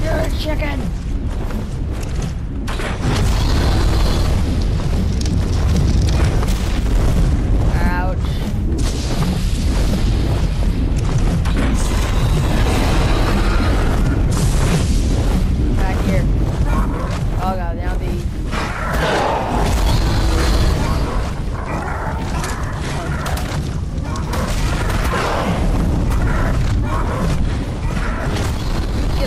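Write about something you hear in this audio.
Strong wind roars steadily all around.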